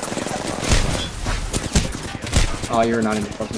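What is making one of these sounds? Explosions and gunfire crack and boom nearby.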